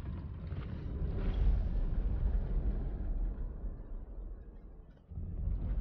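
Wheels roll over the ground with a low rumble.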